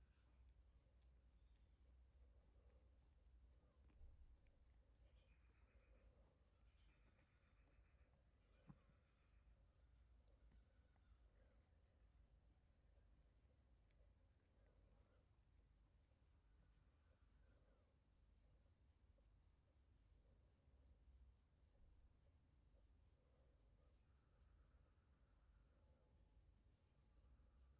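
A cat purrs softly, very close.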